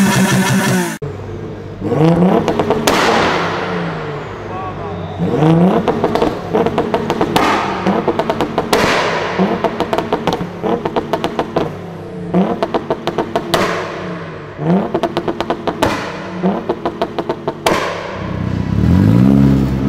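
A car engine revs hard again and again in an echoing hall.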